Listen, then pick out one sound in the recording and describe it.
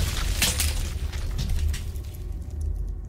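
Heavy stone slabs crash and tumble down.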